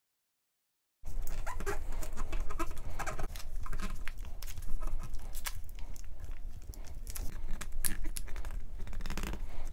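Plastic film crinkles and rustles as it is peeled and pressed down by hand.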